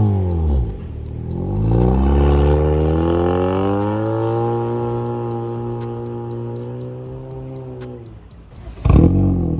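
A car accelerates away with a roaring exhaust, rising through the gears and fading.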